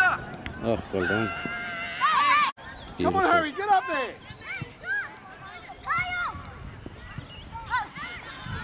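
Children shout and call out loudly outdoors.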